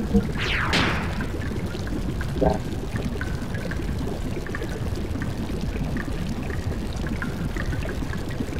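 Low, murky game music plays.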